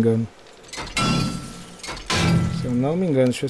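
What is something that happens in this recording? A metal wrench strikes a wooden wall with dull thuds.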